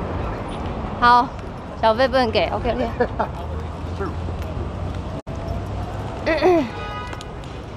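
A young woman speaks close by in short, animated bursts.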